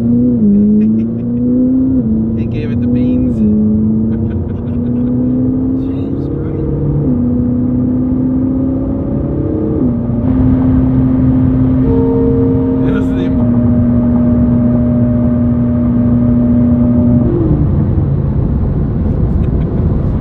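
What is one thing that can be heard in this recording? Wind and tyres rush steadily on a highway.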